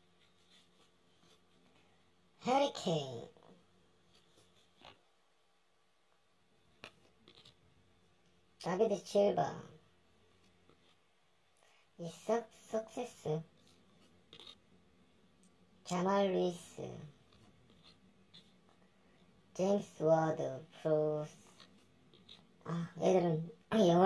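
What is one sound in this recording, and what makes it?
Trading cards slide and rustle softly between fingers.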